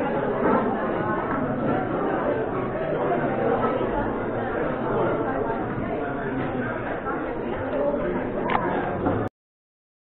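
A crowd of men and women chatter in a large echoing room.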